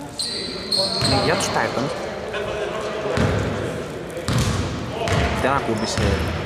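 A basketball bounces with thuds that echo in a large hall.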